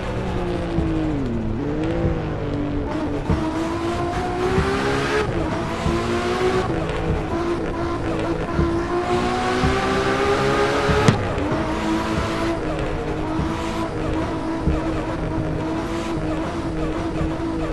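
A car engine revs hard, rising in pitch through each gear and dropping at each shift.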